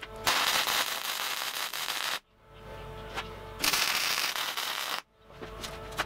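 A welding arc crackles and hisses loudly in short bursts.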